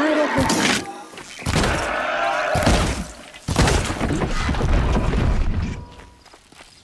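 Loud blasts boom and crackle.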